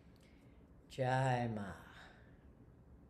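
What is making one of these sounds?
A man sings a short, wavering phrase, heard through an online call.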